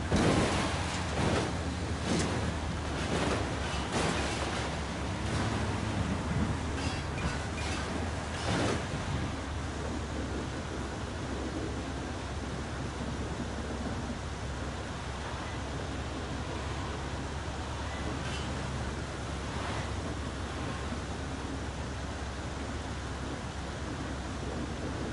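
An armoured vehicle's engine rumbles steadily as it drives.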